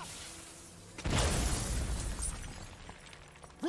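A rock wall bursts apart with a deep, rumbling boom.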